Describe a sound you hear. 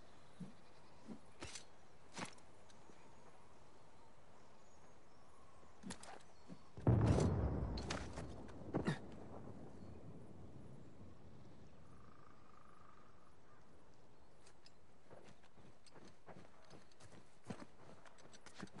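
Footsteps crunch softly on dry grass.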